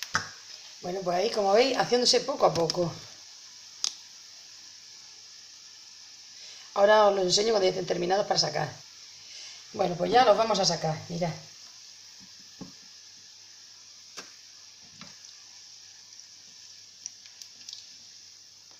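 Dough fritters sizzle and bubble in hot oil.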